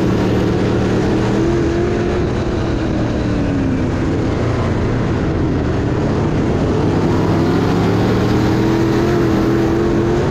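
Other race car engines roar nearby.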